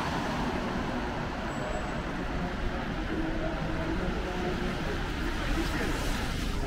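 Traffic rumbles along a wet city street outdoors.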